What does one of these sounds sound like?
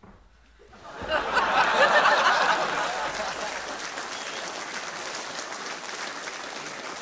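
An audience claps steadily.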